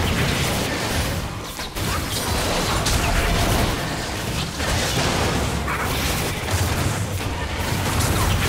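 Magic effects whoosh and crackle in a fast game battle.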